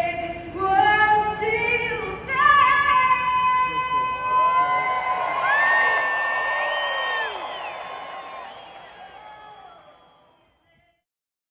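A woman sings through loudspeakers, echoing across a large open stadium.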